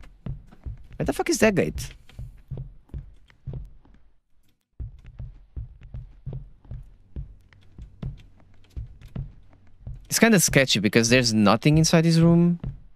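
A young man speaks close to a microphone, with animation.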